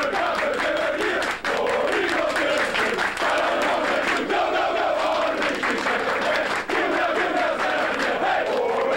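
A crowd of young men chants and shouts loudly close by.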